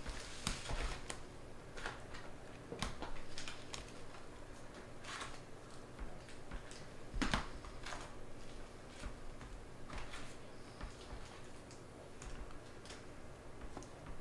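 Trading cards shuffle and flick against each other in hands.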